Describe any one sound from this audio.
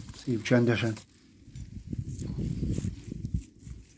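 A mesh net rustles against dry reeds.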